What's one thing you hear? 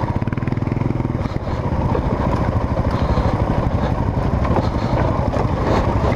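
Tyres rattle over rough stony ground.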